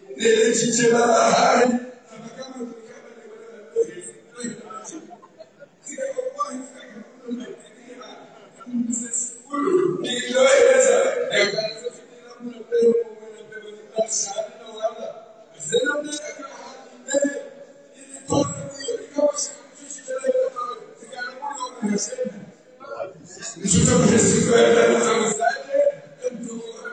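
Men chat among themselves in a large, echoing hall.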